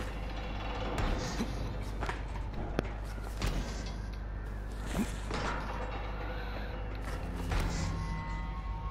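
Hands grip and clang against metal bars while climbing.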